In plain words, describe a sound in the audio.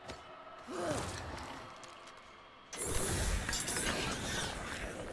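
Fighting sounds and blows from a game play in a rush.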